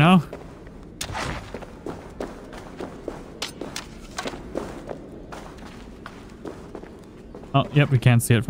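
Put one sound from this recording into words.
Footsteps crunch on a stone floor.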